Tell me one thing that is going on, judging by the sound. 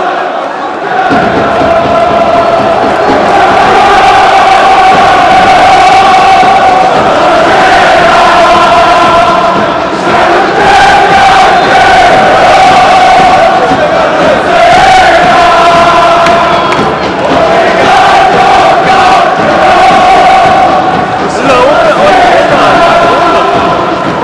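A large crowd of fans chants loudly in unison in a big open stadium.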